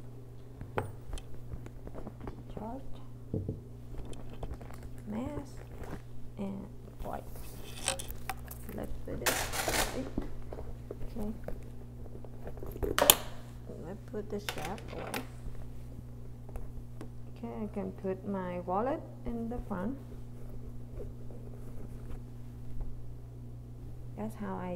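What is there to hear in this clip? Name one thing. Leather bags and small items rustle and knock as they are handled.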